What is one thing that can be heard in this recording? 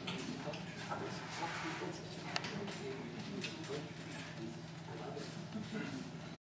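A small brass ensemble plays a tune.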